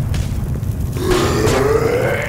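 A creature shrieks while burning.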